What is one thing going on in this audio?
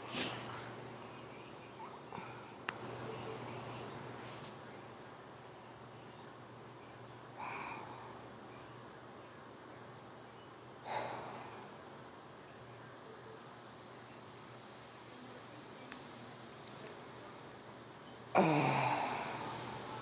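A middle-aged woman speaks quietly and briefly, heard through a phone microphone.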